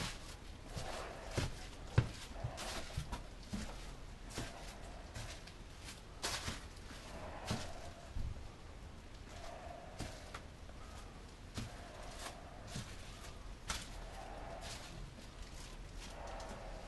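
A brush swishes and scrapes across a smooth surface.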